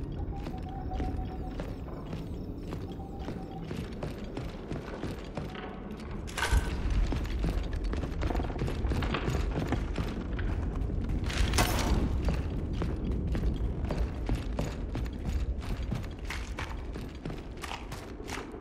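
Heavy armoured footsteps thud on wooden boards.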